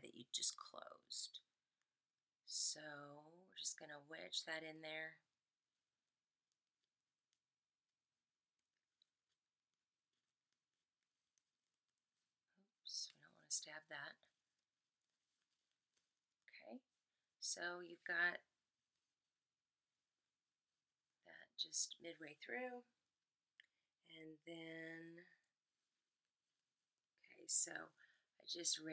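A young woman talks calmly and closely, in short bursts with pauses.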